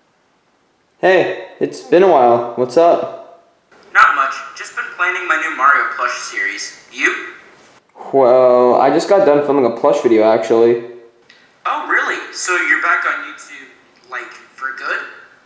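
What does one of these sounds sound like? A man speaks animatedly over an online call.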